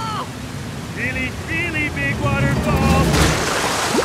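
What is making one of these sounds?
A man yells in panic.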